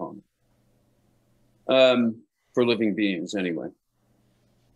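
A middle-aged man speaks calmly and closely through a microphone on an online call.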